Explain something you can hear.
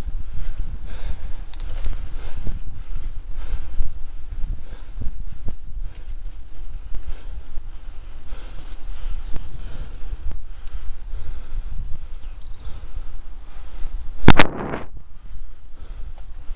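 Bicycle tyres roll along a paved path.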